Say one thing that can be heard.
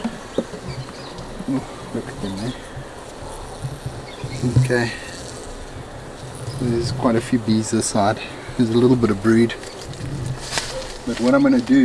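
Bees buzz around a hive.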